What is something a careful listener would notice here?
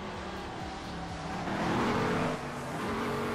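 A car scrapes and thuds against a wall.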